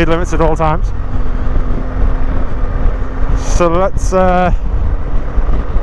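Wind roars and buffets against a microphone on a moving motorcycle.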